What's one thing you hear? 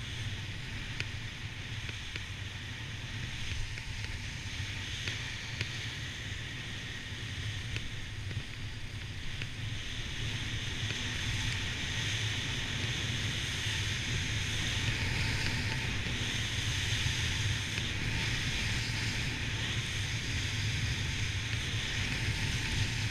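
Skis hiss and scrape over packed snow, growing louder.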